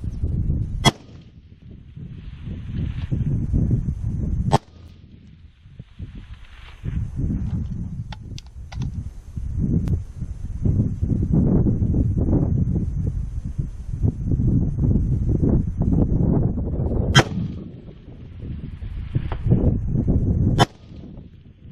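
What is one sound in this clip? A rifle fires sharp, loud shots close by.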